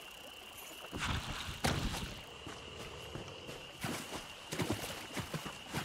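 Footsteps rustle through grass and splash in shallow water.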